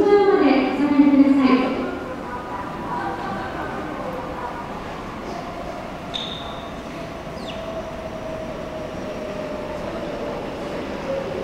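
A train rumbles as it approaches, growing slowly louder.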